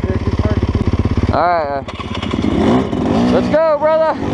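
Another motorbike engine buzzes nearby.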